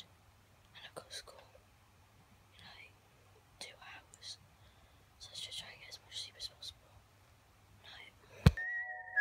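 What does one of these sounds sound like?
A young boy mumbles drowsily and quietly, close by.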